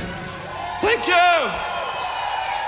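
A crowd cheers and whistles loudly in a large hall.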